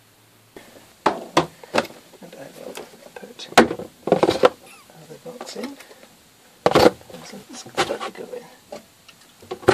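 Plastic food boxes clatter and knock as they are packed away.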